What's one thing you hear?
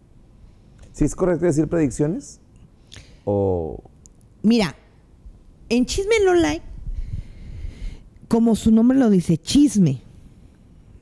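A middle-aged woman speaks with animation into a microphone, close by.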